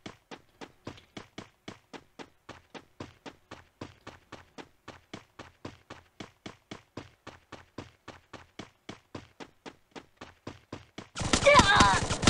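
Quick footsteps run over ground in a steady rhythm.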